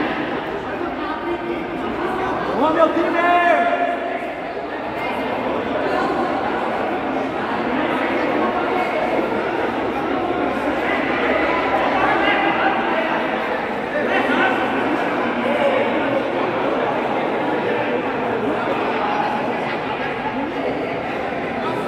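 A crowd of young men shouts and chatters loudly in a large echoing hall.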